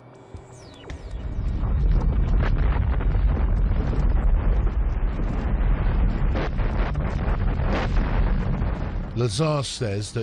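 A huge explosion rumbles deeply and rolls on.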